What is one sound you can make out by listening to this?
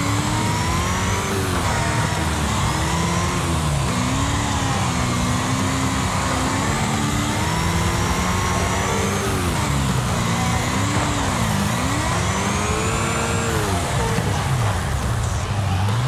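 A racing car engine revs up and down with gear changes.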